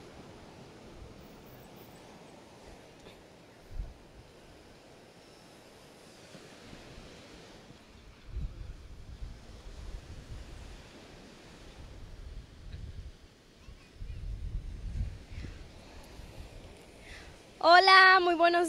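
Waves wash gently onto a beach.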